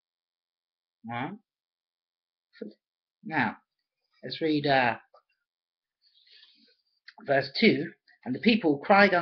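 A man speaks calmly and slowly in short phrases, close to a microphone.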